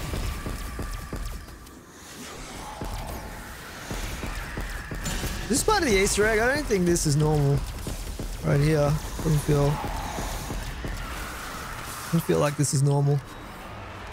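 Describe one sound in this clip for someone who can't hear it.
A ray gun fires rapid crackling energy bursts.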